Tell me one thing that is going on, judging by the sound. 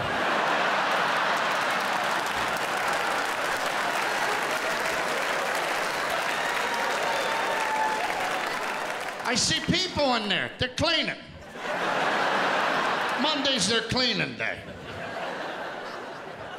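A large audience laughs and applauds.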